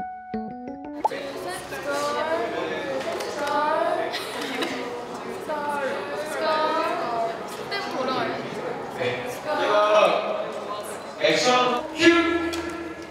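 Young women talk excitedly together close by.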